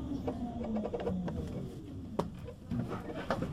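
A tram's electric motor hums and winds down.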